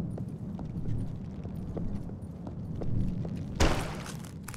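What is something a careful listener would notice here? Footsteps tap lightly at an even pace.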